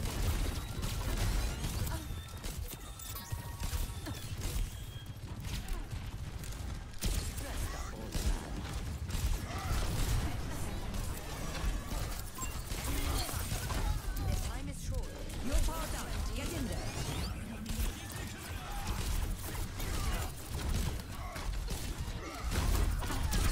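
Rapid gunshots fire in bursts.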